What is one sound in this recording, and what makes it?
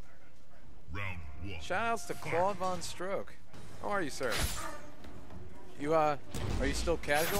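Blows and magic blasts crack and thud in a fight.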